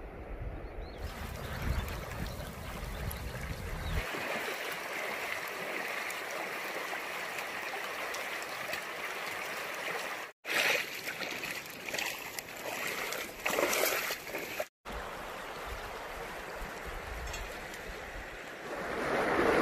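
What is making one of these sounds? A shallow stream trickles and babbles over stones.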